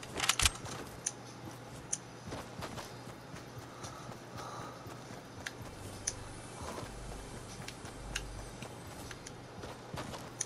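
Quick footsteps patter over grass and dirt.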